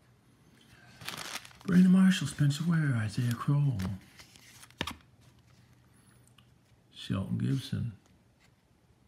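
Trading cards rustle and slide as they are flipped through by hand.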